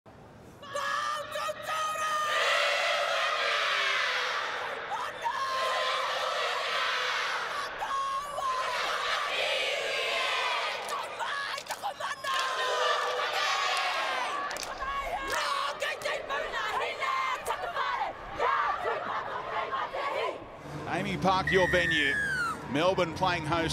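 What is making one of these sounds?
A team of young women chant and shout loudly together outdoors.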